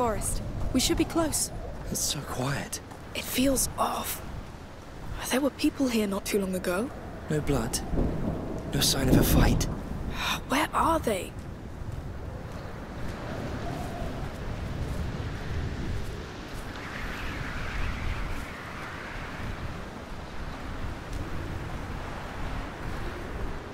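Footsteps crunch softly on dry ground.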